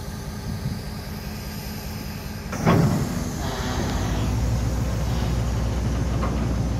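A long freight train rumbles and clatters steadily along the rails nearby.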